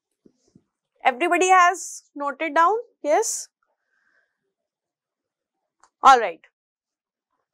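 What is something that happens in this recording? A woman speaks calmly into a close microphone, in short phrases.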